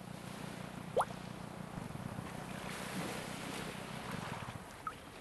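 A small boat engine hums steadily, then stops.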